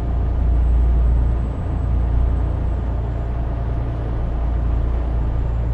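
Tyres roll on the road with a steady hum.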